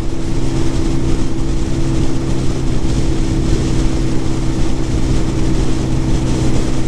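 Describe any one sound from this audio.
Wind rushes loudly past, as if outdoors at speed.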